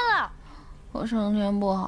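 A young woman moans sleepily at close range.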